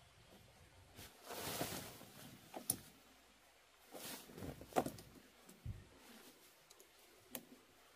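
Tent fabric rustles and swishes as a tent is pulled up.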